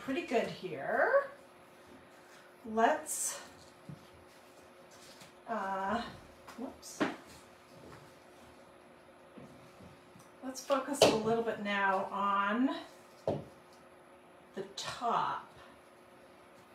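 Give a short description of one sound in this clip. A middle-aged woman speaks calmly and close by, pausing now and then.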